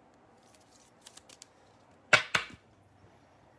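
A hard plastic card case clicks and taps as it is picked up and handled.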